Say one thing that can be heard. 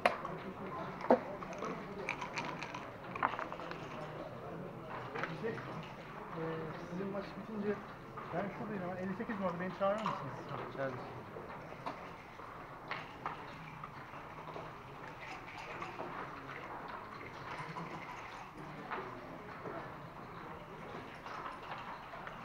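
Game pieces click and clack on a wooden board.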